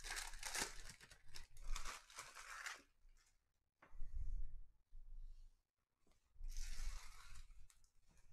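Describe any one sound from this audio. Cards rustle and slide as a hand shuffles through them.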